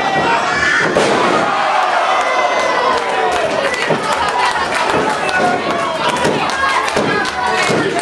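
Wrestlers thud onto a wrestling ring mat.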